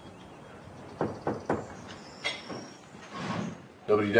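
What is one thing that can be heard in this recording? A wooden door scrapes open.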